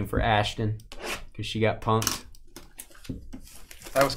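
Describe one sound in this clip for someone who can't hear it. Plastic wrapping crinkles as a box is opened.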